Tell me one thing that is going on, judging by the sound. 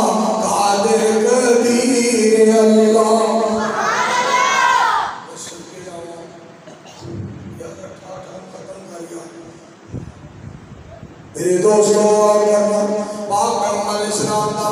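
A man chants loudly and melodiously into a microphone, heard through loudspeakers.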